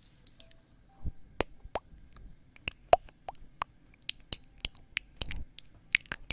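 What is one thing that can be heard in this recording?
Soft mouth sounds click and pop right against a microphone.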